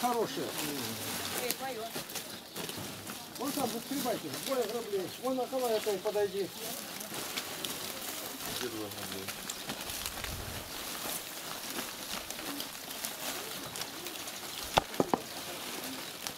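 Dry stalks rustle and crackle as they are handled and thrown.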